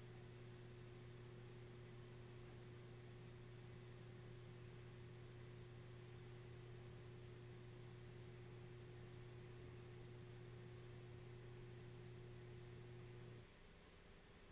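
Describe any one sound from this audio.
A synthesizer holds a steady low droning tone that cuts off abruptly.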